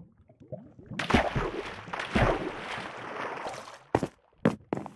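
Water splashes and swirls around a swimmer.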